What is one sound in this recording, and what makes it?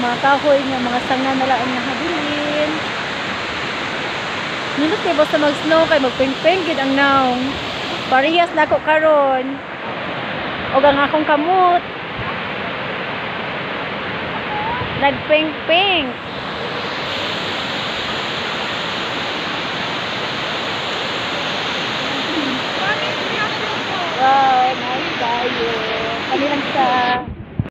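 A woman talks cheerfully and with animation close to a phone microphone, outdoors.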